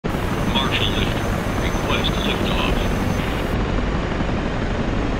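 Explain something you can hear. A jet engine hums and rumbles steadily.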